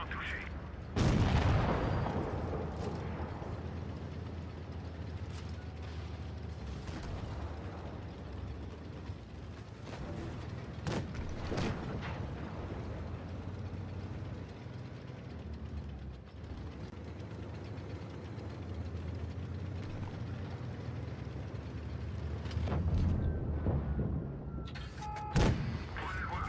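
A tank gun fires with a loud boom.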